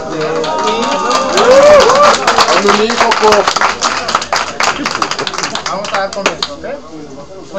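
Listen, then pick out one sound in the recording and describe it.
A crowd of young people claps.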